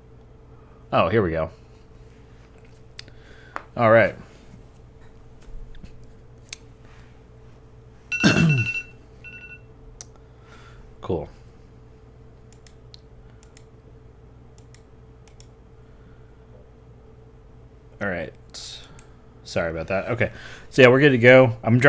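A computer mouse clicks.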